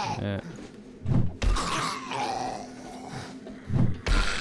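A zombie growls and groans.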